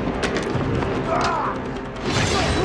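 A man shouts loudly.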